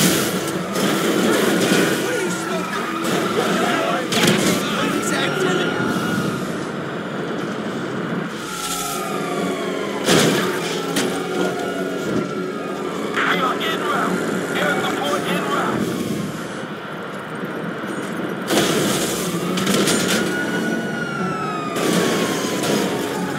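A police siren wails up and down nearby.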